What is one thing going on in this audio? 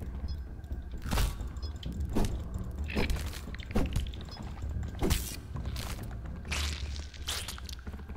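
A club strikes a giant ant with heavy thuds.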